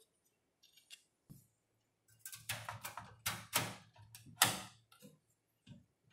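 Metal and plastic parts click and clack as a card is pushed into place inside a computer case.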